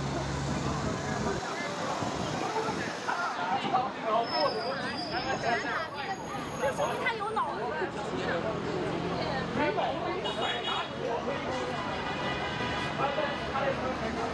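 Busy city street traffic hums outdoors.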